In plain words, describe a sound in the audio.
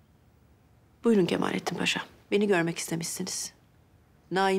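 A woman speaks quietly and tensely, close by.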